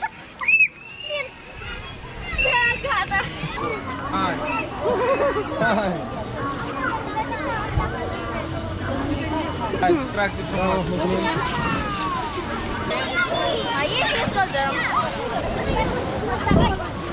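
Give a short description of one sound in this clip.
Many children shout and chatter outdoors in a busy crowd.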